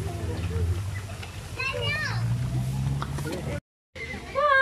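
Fish splash and churn in shallow water.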